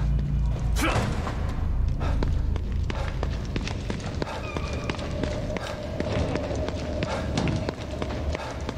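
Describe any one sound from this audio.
Footsteps run quickly over a hard concrete floor.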